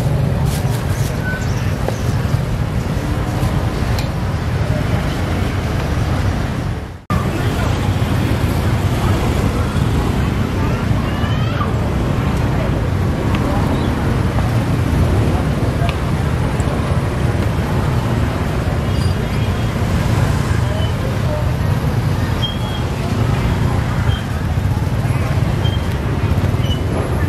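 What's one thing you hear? Motorbike engines hum and pass by nearby.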